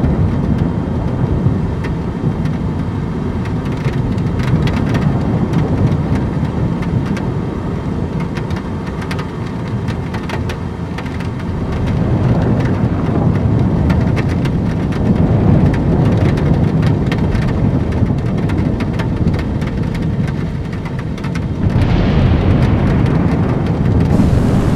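Rain patters and ticks against a windscreen.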